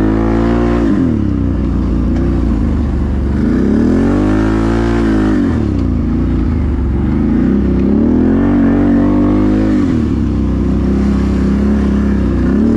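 A quad bike engine roars close by, revving up and down.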